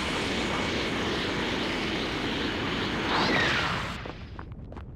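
A heavy punch lands with a loud impact.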